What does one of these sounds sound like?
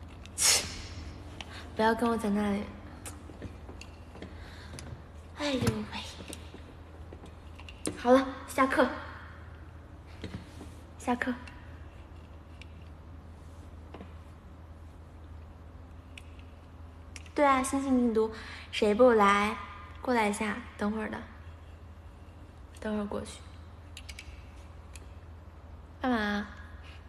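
A young woman talks cheerfully in short bursts close to a phone microphone.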